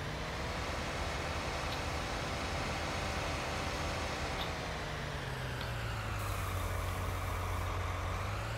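A tractor engine hums steadily and shifts in pitch as it drives.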